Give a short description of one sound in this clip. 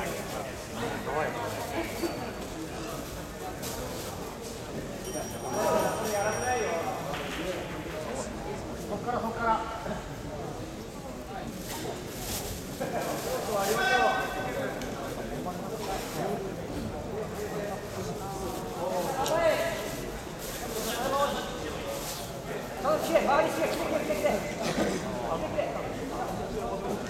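Voices of spectators call out in a large echoing hall.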